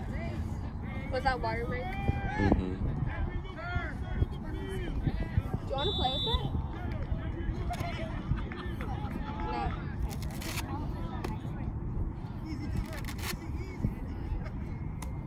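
Distant players and spectators shout and call out across an open field.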